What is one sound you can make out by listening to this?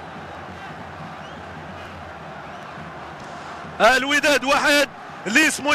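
A stadium crowd murmurs and roars in the distance.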